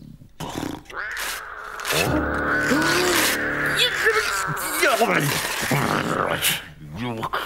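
A cat's claws scratch and tear at paper.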